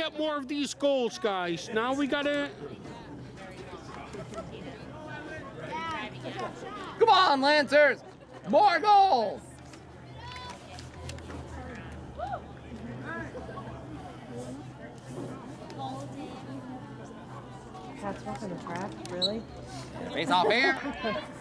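Adult spectators close by shout and cheer loudly.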